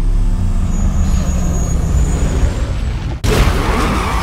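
Car engines idle and rumble deeply.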